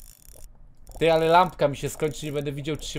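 A young man speaks loudly with animation into a close microphone.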